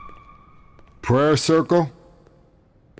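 A man asks a short question in a calm, low voice.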